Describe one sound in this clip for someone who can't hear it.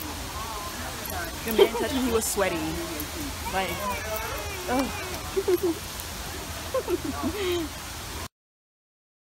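A young woman talks and laughs with animation close by.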